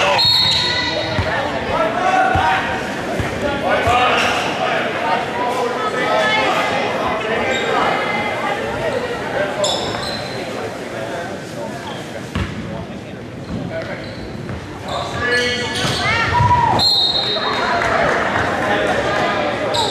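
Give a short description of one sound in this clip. Cheerleaders chant and shout in unison.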